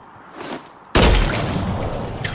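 A gunshot cracks loudly and rings out.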